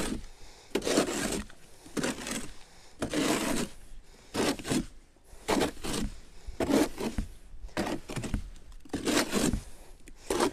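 A hoe scrapes and swishes through wet concrete in a metal tub, in regular strokes.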